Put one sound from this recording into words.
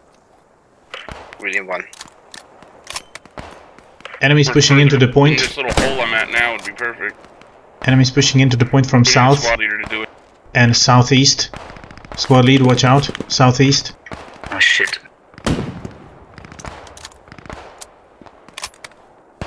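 A rifle bolt clicks and clacks as cartridges are loaded.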